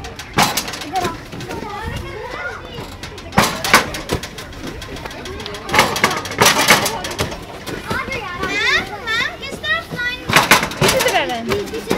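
Children shout and chatter excitedly nearby.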